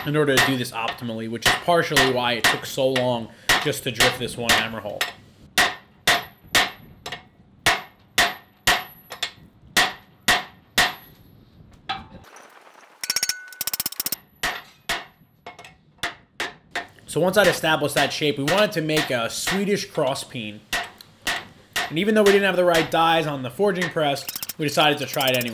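A hammer rings sharply on hot metal in quick repeated blows.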